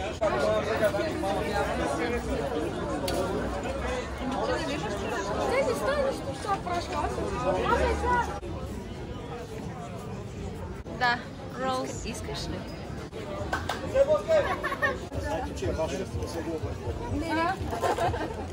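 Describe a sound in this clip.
A crowd of people chatter outdoors at a busy market.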